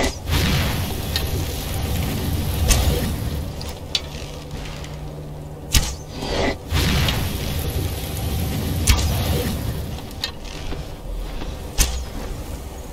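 Arrows release from a bow with sharp twangs.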